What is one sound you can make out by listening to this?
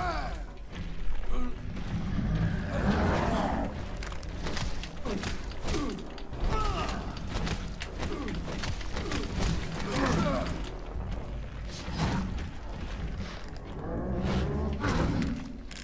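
Fists thud heavily against a body.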